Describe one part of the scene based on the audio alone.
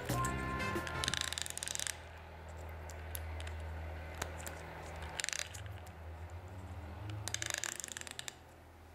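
A dial clicks rapidly as fingers turn it.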